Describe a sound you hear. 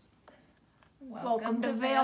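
Two young women sing together in high voices.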